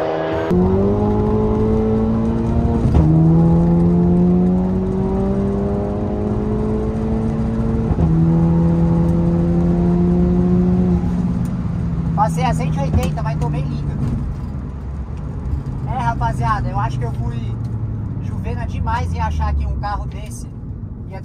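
A car engine roars as it accelerates hard, rising in pitch and dropping with each gear change.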